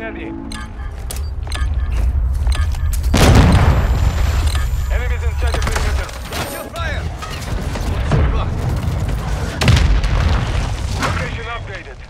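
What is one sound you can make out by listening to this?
Rapid gunfire rattles in sharp bursts.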